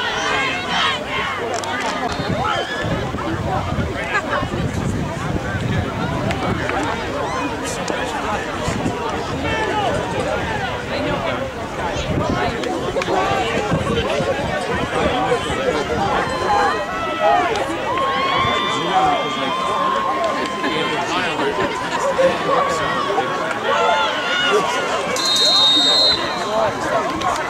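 A crowd of spectators chatters and cheers throughout.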